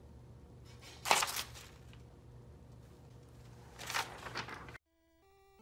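A sheet of paper rustles and slaps onto the floor.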